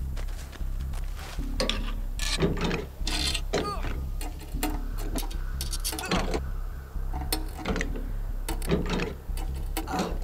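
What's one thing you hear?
Hands rummage through a chest with rattling clicks and knocks.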